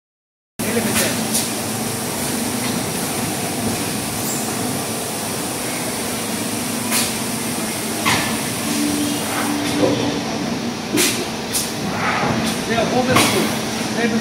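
Plastic bowls clatter and knock on a conveyor belt.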